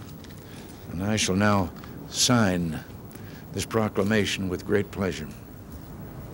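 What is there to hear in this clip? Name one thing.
An elderly man speaks calmly into a microphone outdoors.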